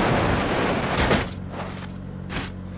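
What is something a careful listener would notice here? A car crashes and tumbles over with a heavy thud.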